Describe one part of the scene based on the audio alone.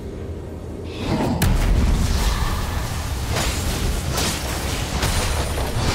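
Game combat effects clash and burst as spells are cast.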